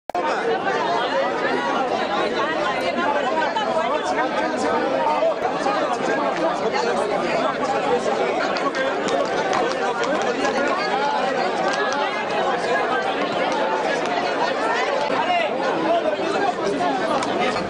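A large crowd chatters and calls out loudly outdoors.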